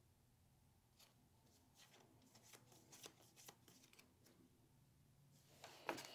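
Playing cards flick and rustle softly as they are handled.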